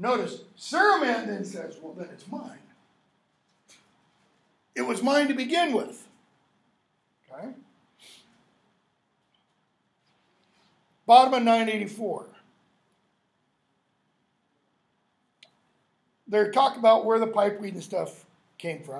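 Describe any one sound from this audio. An elderly man lectures calmly in bursts, with pauses between phrases.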